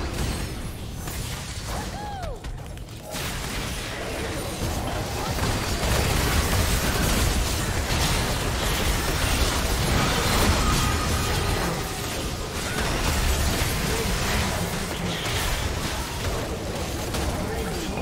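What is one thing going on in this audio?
Game spells and attacks clash and burst in a busy fight.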